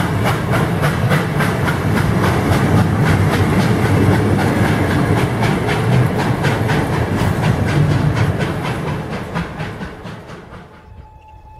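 A train rumbles past close by, its wheels clattering rhythmically over the rail joints.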